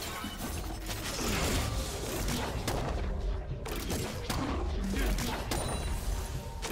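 Game spells burst and crackle in a hectic fight.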